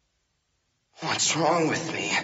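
A young man cries out with strain, close by.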